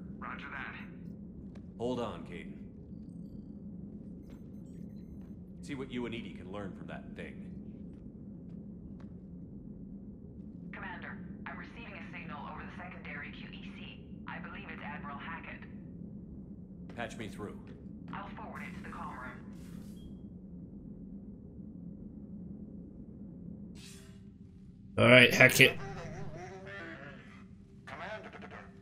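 A man speaks calmly through a loudspeaker.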